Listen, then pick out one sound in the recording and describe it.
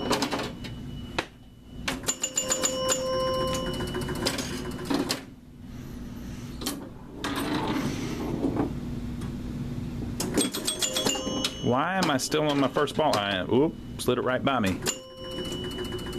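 A pinball machine rings with bells, chimes and electronic tones.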